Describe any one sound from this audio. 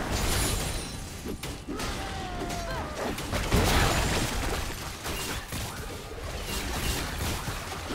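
Video game spell effects whoosh, crackle and burst in a busy fight.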